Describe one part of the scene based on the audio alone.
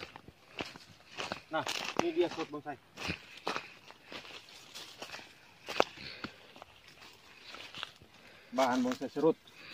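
Leaves and twigs rustle as a man pushes through bushes.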